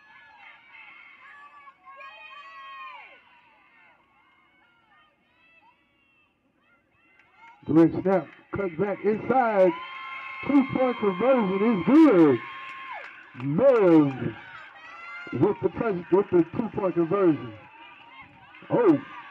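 A crowd of young people shouts and cheers outdoors at a distance.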